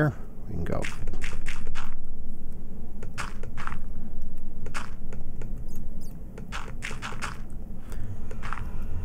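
Blocks of earth thud into place one after another.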